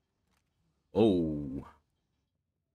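A young man gasps in surprise.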